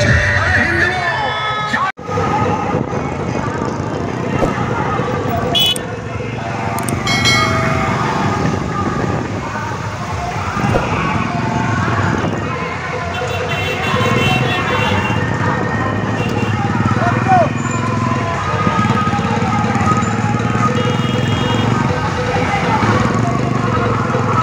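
Motorcycle engines rumble steadily as a procession rolls along.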